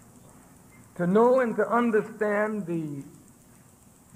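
A man speaks forcefully into a microphone, heard through a loudspeaker.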